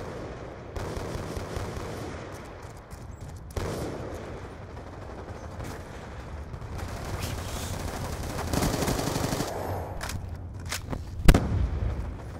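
A rifle fires rapid gunshots.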